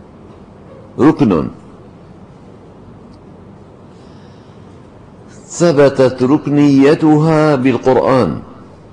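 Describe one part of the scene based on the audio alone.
An elderly man speaks slowly and expressively into a microphone.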